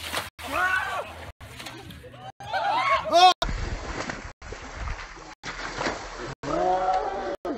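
Water rushes down a slide.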